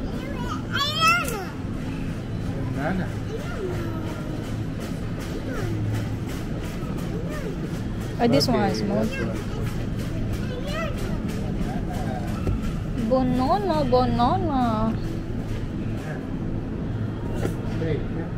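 A shopping trolley rattles as it rolls along.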